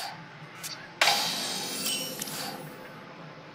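A bright game chime rings out as a turn begins.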